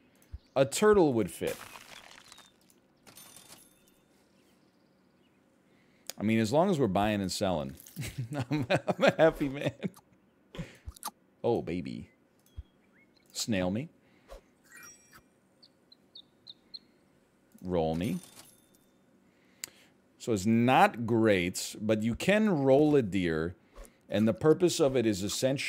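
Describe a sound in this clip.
A man talks with animation, close to a microphone, in short bursts.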